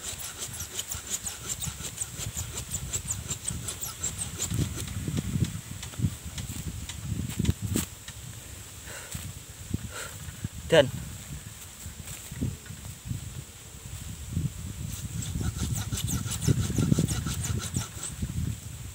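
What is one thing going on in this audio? Dry leaves rustle and crunch underfoot close by.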